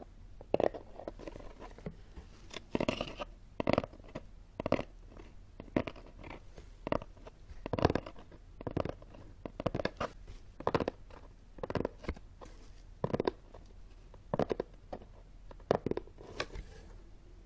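Fingers tap sharply on a cardboard box, close up.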